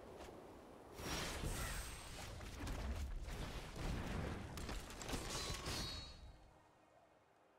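Game sound effects whoosh and chime as cards are played.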